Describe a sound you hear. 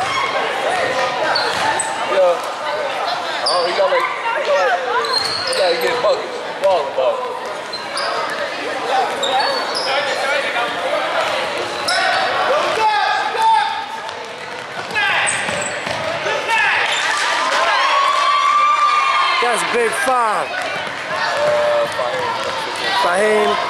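A crowd of spectators chatters and calls out in an echoing hall.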